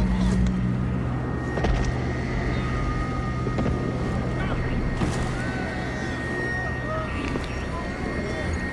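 A strong wind roars and howls outdoors.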